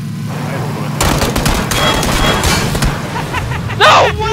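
A vehicle crashes hard into a rock.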